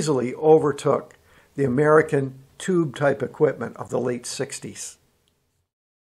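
An older man speaks calmly and with animation close to a microphone.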